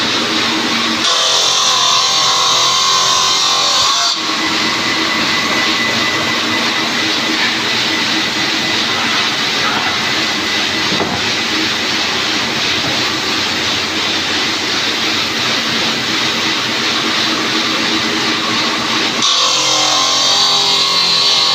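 A power saw grinds loudly through stone with a high, harsh whine.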